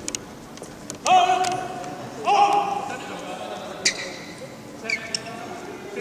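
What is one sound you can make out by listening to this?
Sports shoes squeak sharply on a court floor in a large echoing hall.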